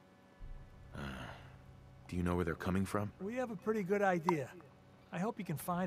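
A second man asks a question calmly, close by.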